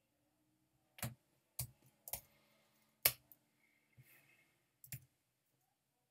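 Keyboard keys click in short bursts.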